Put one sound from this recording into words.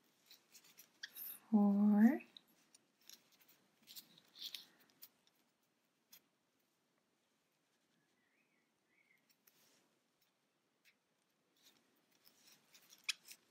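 A crochet hook softly scrapes and clicks through yarn.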